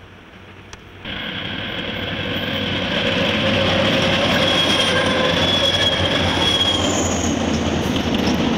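A diesel locomotive engine roars as a train approaches and passes.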